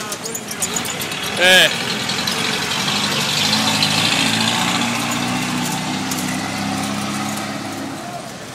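Bicycle rickshaw wheels crunch over a rough dirt road.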